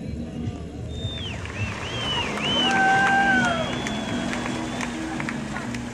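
People in a crowd whistle and cheer.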